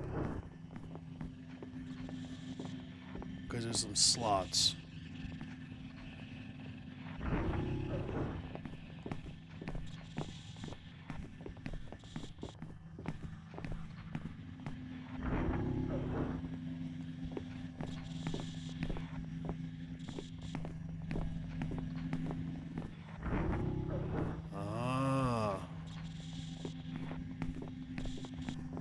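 Soft footsteps tap steadily across a hard floor.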